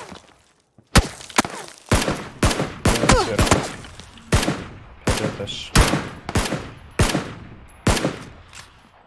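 Gunshots fire in rapid bursts, echoing sharply.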